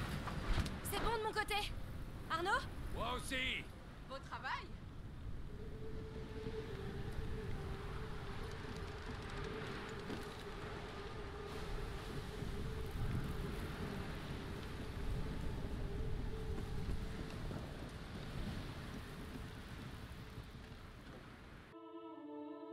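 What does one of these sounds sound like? Sea waves wash and splash against a wooden boat.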